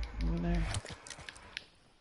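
Footsteps run on a dirt path.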